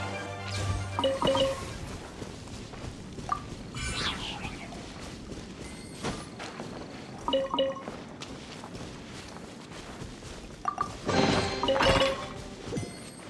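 Short bright chimes ring out now and then.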